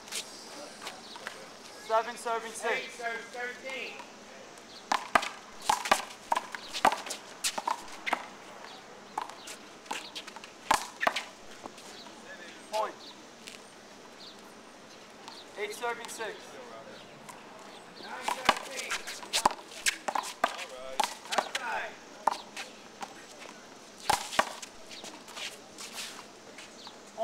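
A rubber ball smacks sharply against a wall outdoors.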